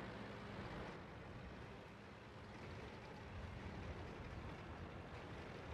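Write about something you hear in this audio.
A tank engine rumbles as a tank drives along.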